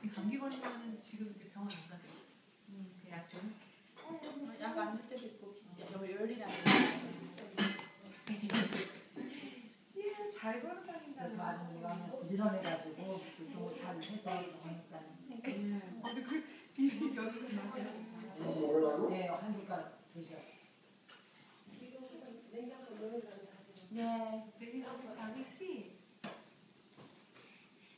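Two women talk and laugh playfully close by.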